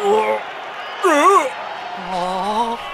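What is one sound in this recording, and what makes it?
A man exclaims in surprise.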